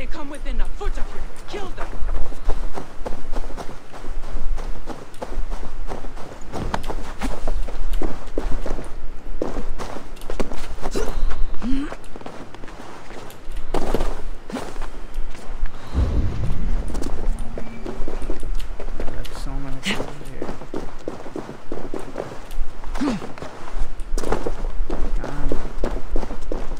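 Footsteps rustle through dry grass and scrape on rock.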